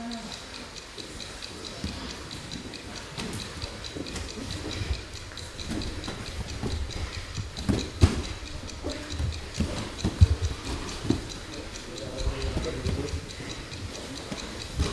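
Bodies shift and thump softly on a padded mat.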